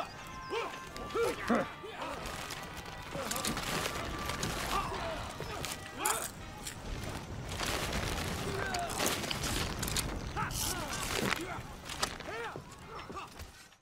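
Swords and shields clash in a battle.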